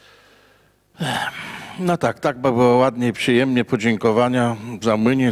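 An elderly man speaks calmly into a microphone, heard over a loudspeaker.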